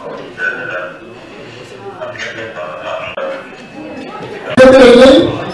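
A man speaks into a microphone, heard through loudspeakers in an echoing hall.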